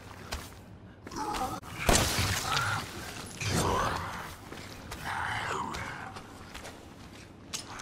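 A monstrous creature growls and snarls.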